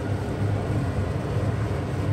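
A wooden spoon stirs stew in a pot.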